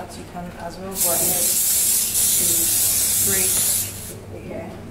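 Hairspray hisses from a spray can in a steady burst.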